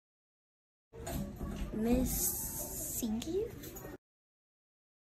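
A young girl speaks calmly, close by.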